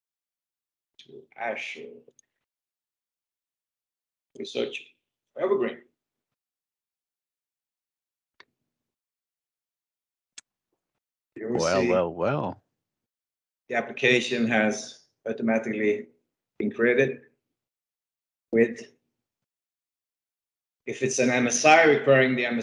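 A man speaks in bursts through an online call, with pauses between phrases.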